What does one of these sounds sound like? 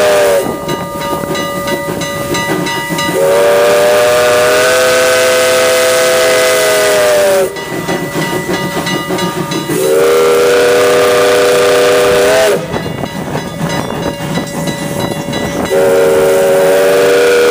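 A railway crossing bell rings rapidly and steadily.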